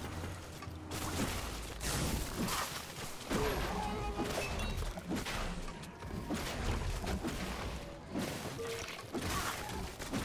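Weapons clash and strike rapidly in a game fight.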